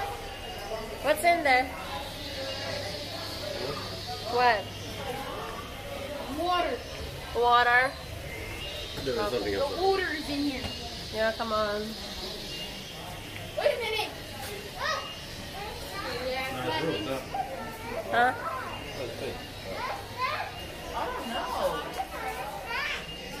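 A young child calls out in short, high bursts nearby.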